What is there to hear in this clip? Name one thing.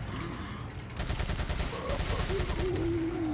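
A gun fires rapid bursts with a metallic clatter.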